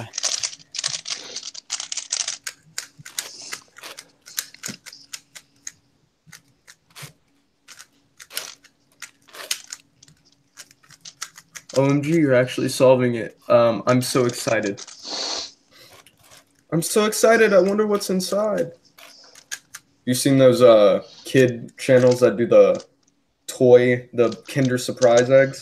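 Plastic puzzle cube pieces click and clack as the cube is turned rapidly.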